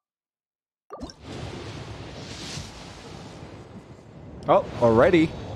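A bright magical whoosh swells and shimmers.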